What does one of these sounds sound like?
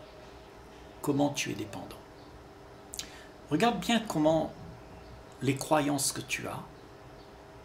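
An elderly man speaks calmly and slowly close by, with pauses between phrases.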